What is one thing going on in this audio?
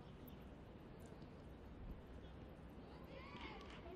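A football is kicked on a grass pitch.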